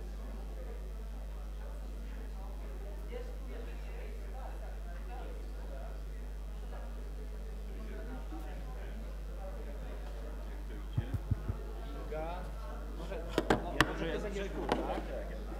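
A crowd of people murmurs quietly in the background.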